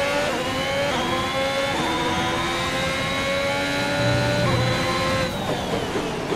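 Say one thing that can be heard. A racing car engine screams at high revs, shifting up through the gears.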